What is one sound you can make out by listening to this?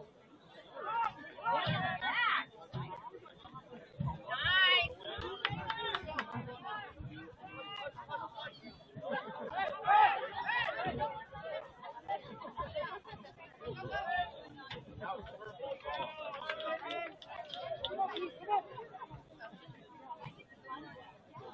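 A crowd of spectators chatters and calls out nearby outdoors.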